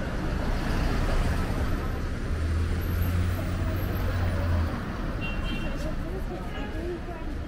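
Outdoor street noise with distant traffic hums throughout.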